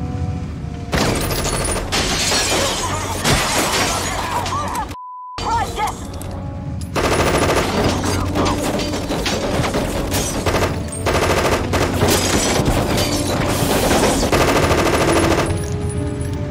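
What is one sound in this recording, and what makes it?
A man fires a gun in rapid bursts.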